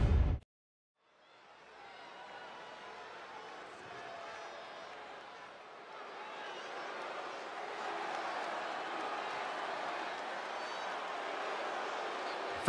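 A large crowd cheers and murmurs in a big echoing arena, growing louder.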